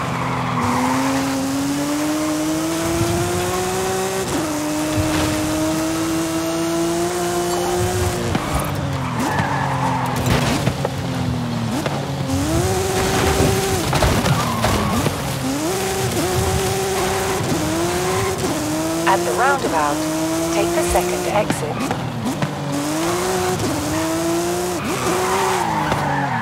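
A sports car engine roars, revving up through the gears and dropping between shifts.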